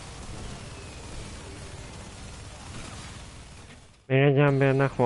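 A heavy machine gun fires in a rapid, continuous burst.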